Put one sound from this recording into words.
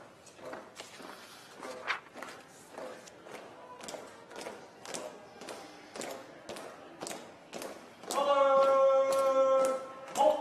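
Footsteps and shuffling sound softly in a large echoing hall.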